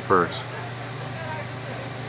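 A man bites into crunchy fried food.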